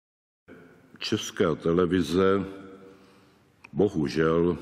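An elderly man speaks calmly into microphones.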